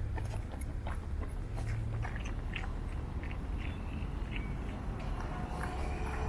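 Running footsteps patter on paving stones.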